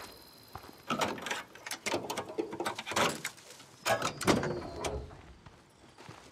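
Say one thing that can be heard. Hands rummage and knock about inside a car.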